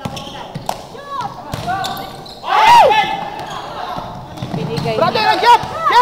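A basketball bounces on the floor with hard thuds.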